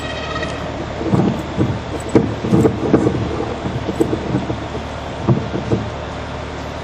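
Knocks and thumps boom through a loudspeaker as a microphone is handled.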